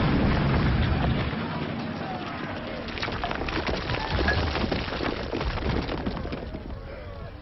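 Debris crashes and rains down after a blast.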